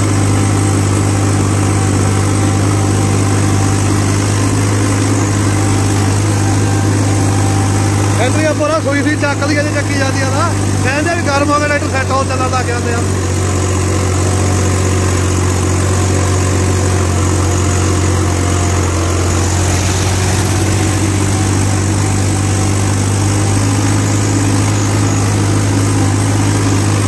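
A tractor engine drones steadily up close.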